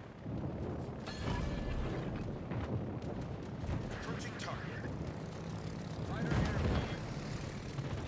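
Explosions boom in quick succession.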